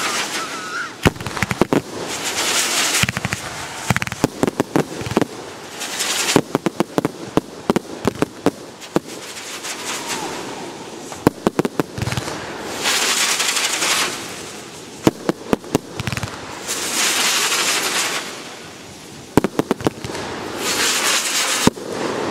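Fireworks bang and pop loudly in quick bursts.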